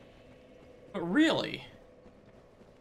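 A young man speaks briefly into a nearby microphone.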